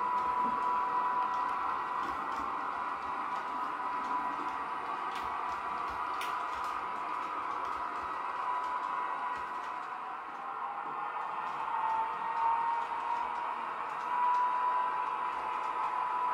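A model train hums and whirs steadily along its track.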